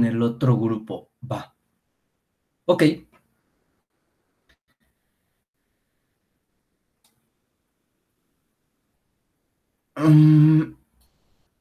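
A middle-aged man speaks in short bursts through a call microphone, with long pauses.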